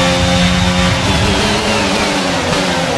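A racing car engine drops in pitch as the gears shift down under braking.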